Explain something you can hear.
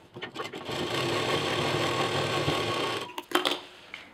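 A sewing machine runs fast with a steady whir.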